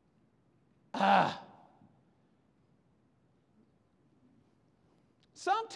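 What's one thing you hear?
A man speaks loudly into a microphone in an echoing hall, in short bursts.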